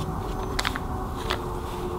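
Records knock softly as a hand flips through them.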